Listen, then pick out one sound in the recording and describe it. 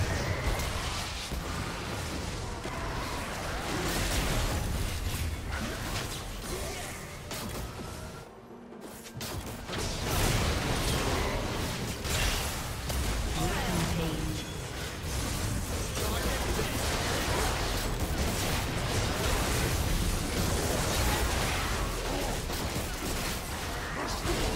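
Fantasy battle sound effects crash and whoosh as spells and blows land.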